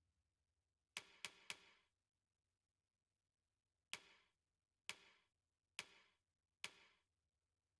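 Soft menu clicks tick a few times.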